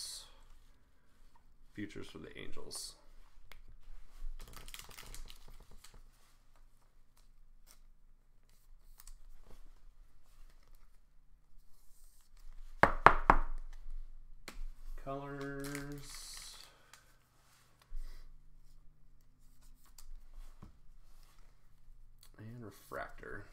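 Plastic card sleeves crinkle and rustle in hands.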